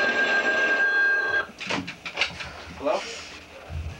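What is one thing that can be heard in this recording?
A telephone handset is picked up with a clatter.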